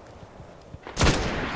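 A rifle fires a quick burst of shots close by.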